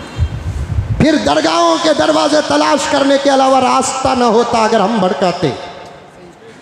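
An elderly man chants in a drawn-out, melodic voice through a microphone.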